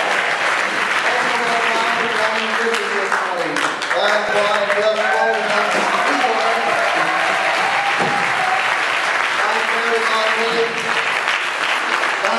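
A band plays along with the choir.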